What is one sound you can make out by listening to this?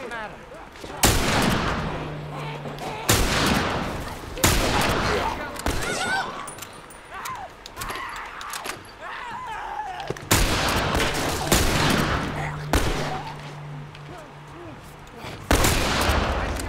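Loud gunshots ring out one at a time, echoing in a room.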